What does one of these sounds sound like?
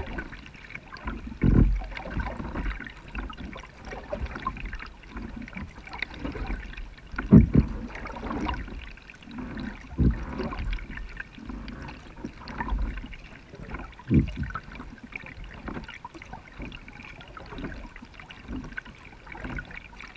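Calm river water laps and gurgles against a kayak hull as it glides along.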